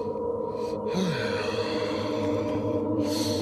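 A man speaks in a low, tense voice.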